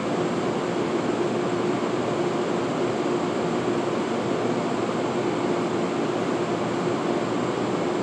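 A subway train rumbles and screeches as it approaches along the tracks, echoing through a large underground station.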